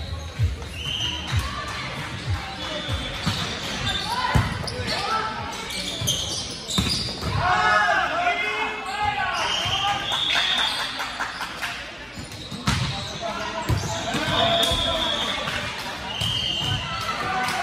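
Young women and men shout and call out to each other in an echoing hall.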